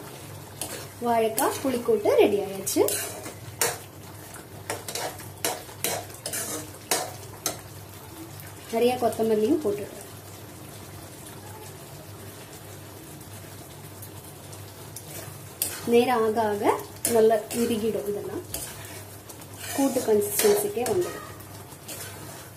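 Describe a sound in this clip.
A metal spoon scrapes and clinks against a pan while stirring.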